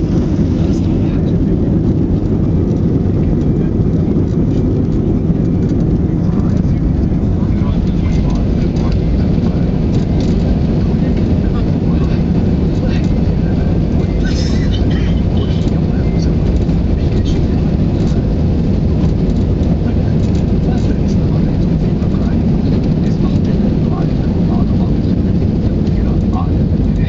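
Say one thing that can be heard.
A jet airliner's engines roar steadily as it rolls along the runway.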